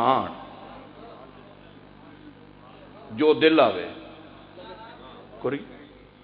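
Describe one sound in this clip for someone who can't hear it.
A man speaks passionately into a microphone over loudspeakers, with pauses between loud phrases.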